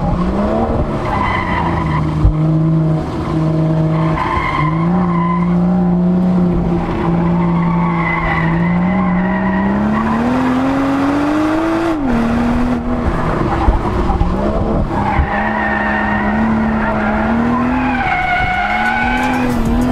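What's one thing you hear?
Tyres squeal on tarmac through the bends.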